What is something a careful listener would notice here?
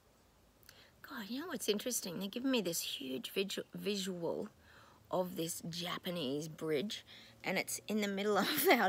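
A middle-aged woman speaks calmly and earnestly close to a microphone.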